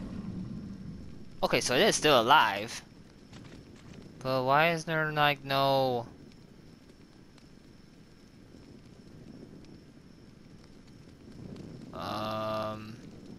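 A torch fire crackles and roars softly.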